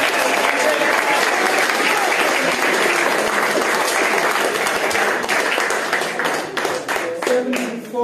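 A crowd chatters and cheers loudly in an echoing hall.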